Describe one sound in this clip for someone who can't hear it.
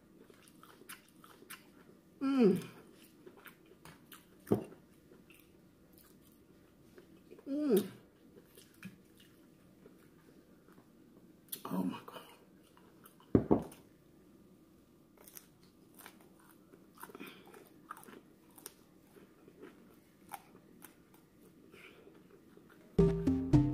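Crispy fried food crunches as a woman chews.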